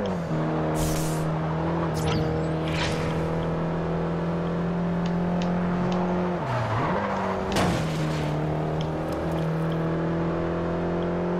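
A racing car engine drones steadily at high revs, dipping briefly as the car slows.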